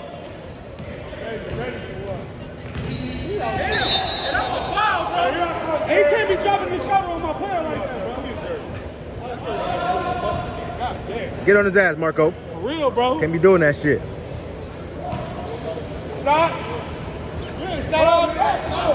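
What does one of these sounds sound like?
Several men talk and call out across a large echoing gym.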